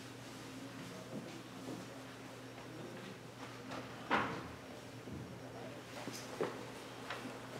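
A middle-aged man reads aloud calmly into a microphone.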